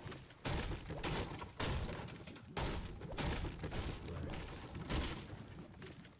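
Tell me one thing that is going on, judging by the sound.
A pickaxe strikes wood with heavy, repeated thuds.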